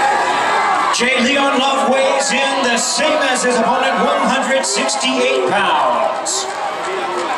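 A crowd claps and whistles loudly.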